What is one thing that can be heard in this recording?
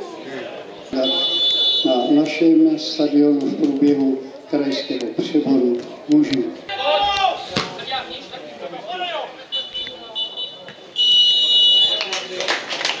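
A referee's whistle blows in sharp blasts.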